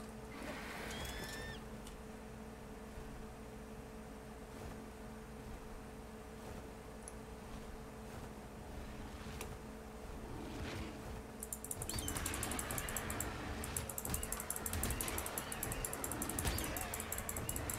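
Large wings flap in the air.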